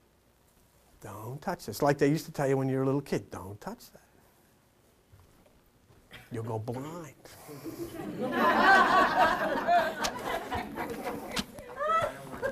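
An elderly man speaks with animation, lecturing.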